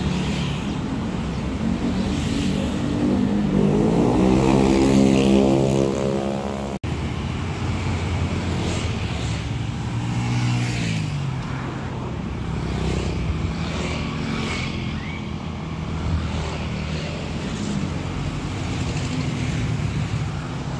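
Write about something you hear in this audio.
Traffic rumbles past steadily on a road outdoors.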